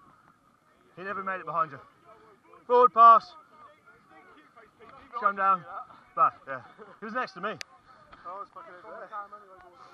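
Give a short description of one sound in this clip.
Men call out to each other across an open field.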